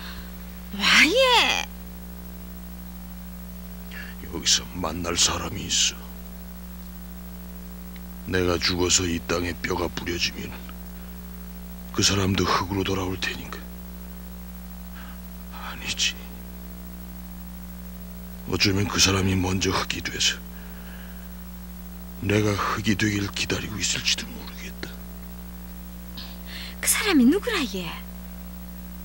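A woman speaks quietly and urgently, close by.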